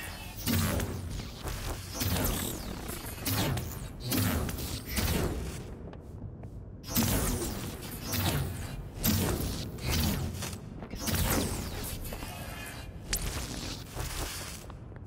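Energy blasts whoosh and crackle in repeated bursts.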